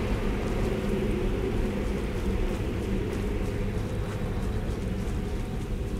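Footsteps crunch on dirt and leaves.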